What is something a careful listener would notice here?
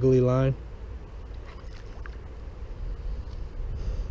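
A fishing lure plops into still water.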